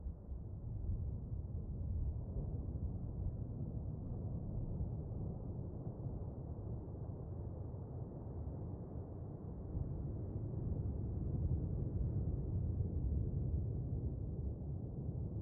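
Deep underwater rumble drones steadily.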